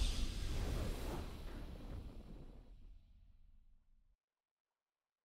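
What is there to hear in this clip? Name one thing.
A triumphant game fanfare rings out and fades away.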